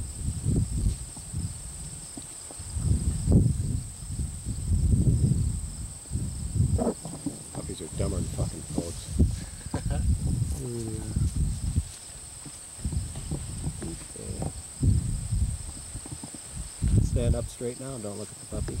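Wind rumbles into the microphone outdoors.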